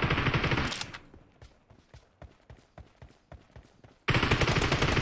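Footsteps run over the ground.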